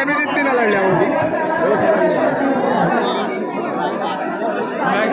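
A large outdoor crowd chatters and shouts loudly.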